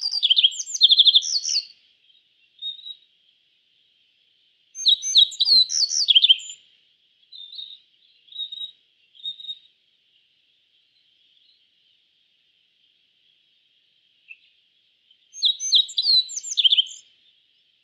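A small songbird sings bright, quick bursts of chirps and trills, with pauses between.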